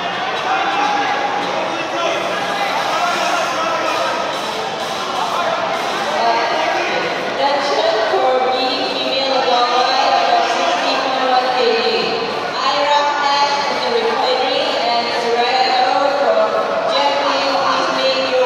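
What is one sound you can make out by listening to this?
A crowd of spectators shouts and cheers, echoing in a large hall.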